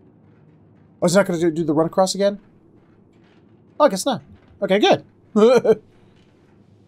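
A middle-aged man speaks in short bursts, close to a microphone.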